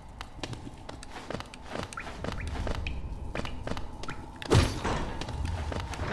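Small quick footsteps patter on stone.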